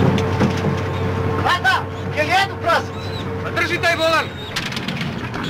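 A man shouts loudly over a rumbling engine.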